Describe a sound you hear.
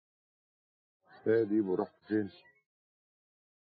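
An older man speaks calmly up close.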